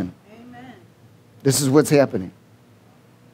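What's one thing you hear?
A man speaks with emphasis into a microphone.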